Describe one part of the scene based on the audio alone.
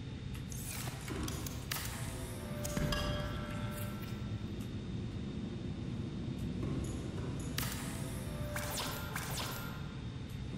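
A storage locker door swings open with a soft mechanical whoosh.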